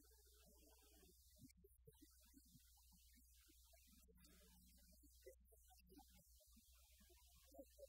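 A live band plays music in a large echoing hall.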